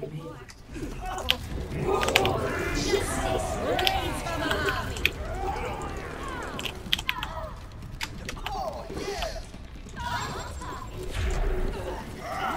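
Game explosions crack and boom.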